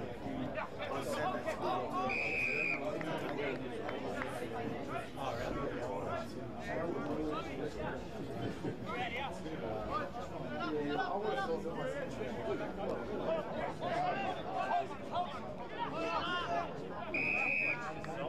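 Men shout and call out on an open field.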